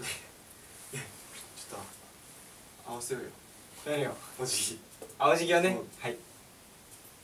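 Young men talk and laugh together close by.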